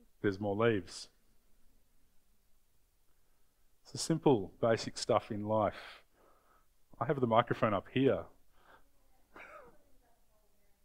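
A man speaks calmly through a microphone in an echoing room, pausing between phrases.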